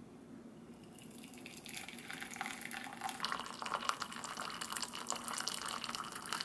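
Hot water pours into a glass cup with a bubbling splash.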